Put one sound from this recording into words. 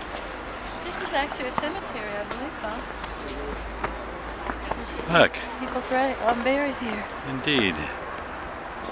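A woman talks nearby, outdoors.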